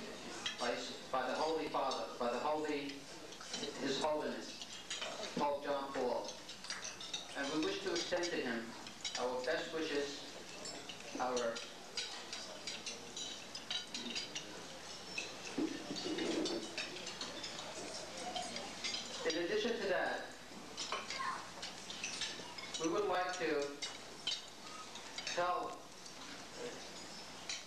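A man speaks calmly into a microphone, heard over a loudspeaker in a large room.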